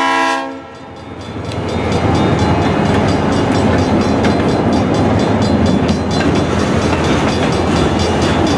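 Freight cars clatter and rumble past on the rails close by.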